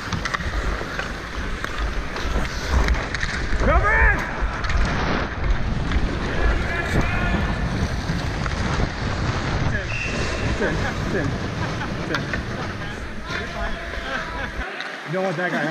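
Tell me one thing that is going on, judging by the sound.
Skates scrape and carve across ice up close.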